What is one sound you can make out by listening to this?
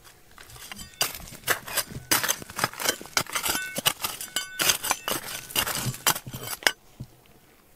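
A small blade scrapes and digs into dry, stony soil.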